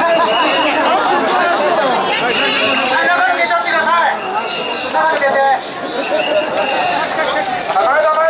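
An elderly man shouts calls to the crowd.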